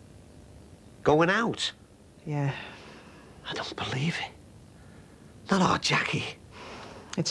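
A middle-aged man speaks earnestly, close by.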